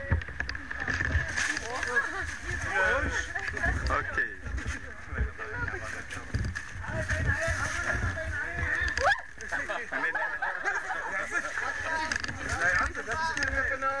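A small group of adult men and women chatter nearby.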